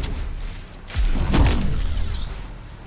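A heavy thud lands on the ground.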